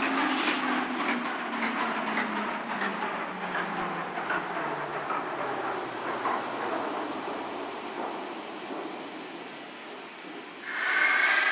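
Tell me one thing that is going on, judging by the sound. A subway train rolls past with wheels clattering over rail joints.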